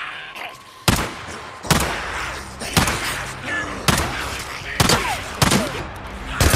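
Zombies snarl and growl.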